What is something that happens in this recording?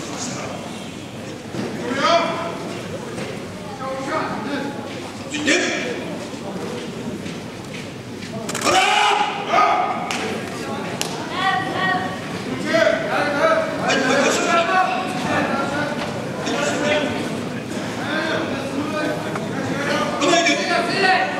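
An elderly man calls out loudly in a large echoing hall.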